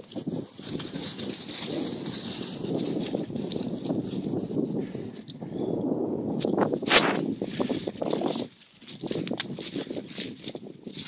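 Dry grass rustles and crackles as dogs push through it.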